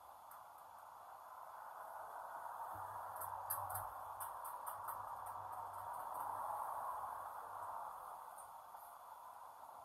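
A car passes by on a road, heard muffled through a window, rising and fading.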